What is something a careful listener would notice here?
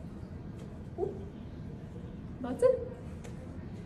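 A young woman exclaims briefly close by.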